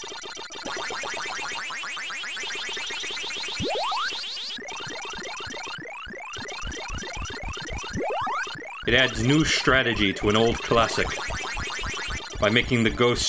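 Arcade game sounds chirp and warble rapidly.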